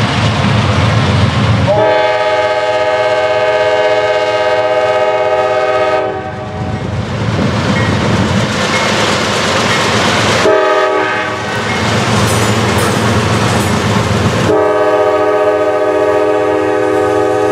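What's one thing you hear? Diesel locomotives rumble and roar as they pass close by.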